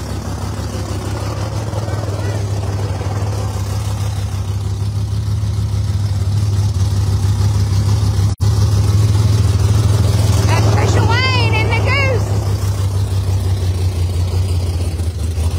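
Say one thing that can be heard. A car engine rumbles loudly and steadily nearby.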